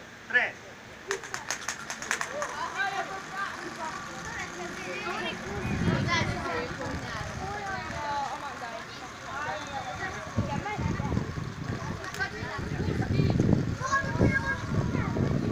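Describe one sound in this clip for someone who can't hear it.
Spinning tops clatter and click on a paved ground.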